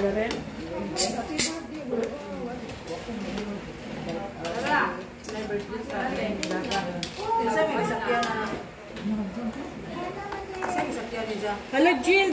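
Several people chat and laugh in the room.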